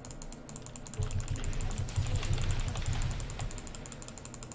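Video game combat sounds thump and crackle as spells clash.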